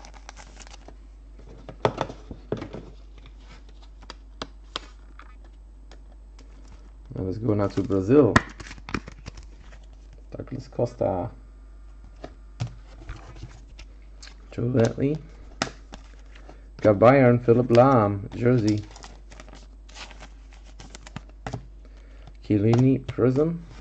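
Plastic card cases click and tap as they are handled.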